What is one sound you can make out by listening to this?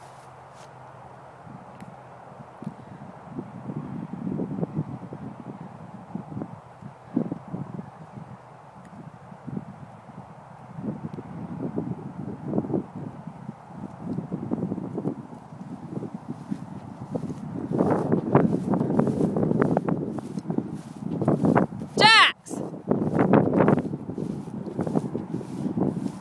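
Wind blows and buffets outdoors, gusting stronger toward the end.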